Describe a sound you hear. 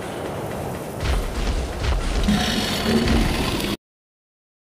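A large creature gives a deep, rumbling growl.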